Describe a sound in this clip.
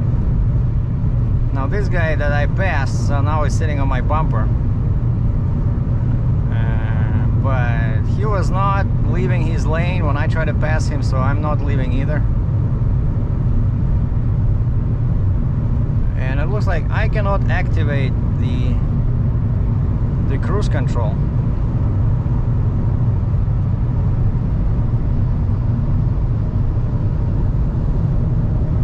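Tyres rumble steadily on a highway from inside a moving car.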